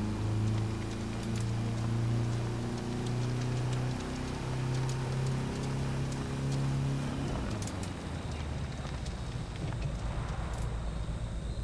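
A car engine hums steadily at low revs, then drops to a deeper rumble.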